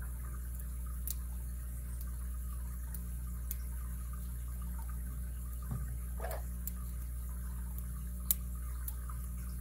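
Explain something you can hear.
Thin metal picks click and scrape softly inside a lock.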